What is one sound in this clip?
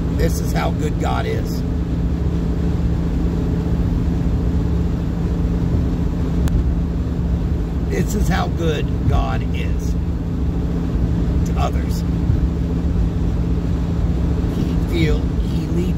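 A car engine hums and tyres roar steadily on the highway, heard from inside the car.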